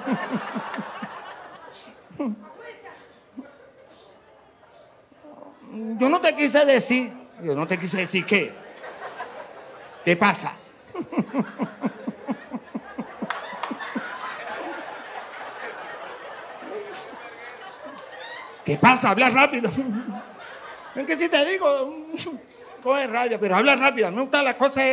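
An audience laughs.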